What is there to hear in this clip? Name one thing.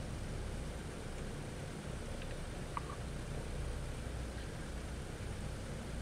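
Aircraft engines drone with a low, steady hum.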